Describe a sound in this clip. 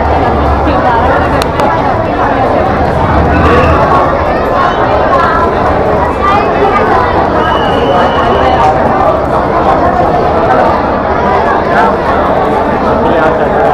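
A large crowd chatters loudly all around in an echoing tunnel.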